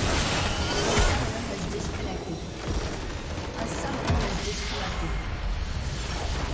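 A large structure explodes and crumbles with a deep boom.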